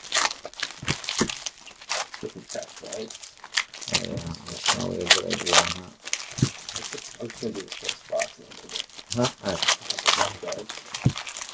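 Foil wrappers crinkle and tear open.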